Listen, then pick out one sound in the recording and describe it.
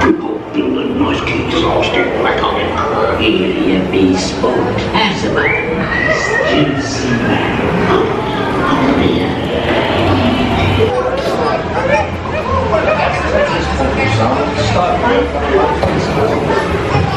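Men's recorded voices sing loudly through loudspeakers in an echoing space.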